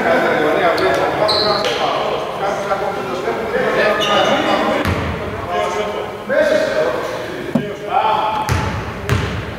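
A man calls out loudly in a large echoing hall.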